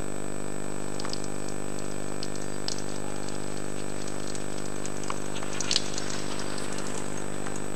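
Bicycle tyres crackle over fallen leaves.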